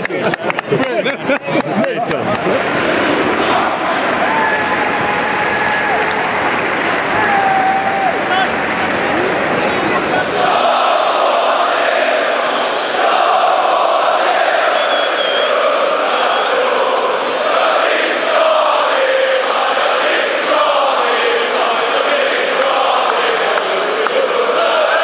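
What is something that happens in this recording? A large stadium crowd sings and chants loudly, echoing around the stands.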